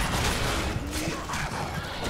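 A fiery explosion bursts.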